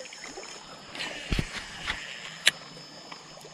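A fishing line whizzes off a reel during a cast.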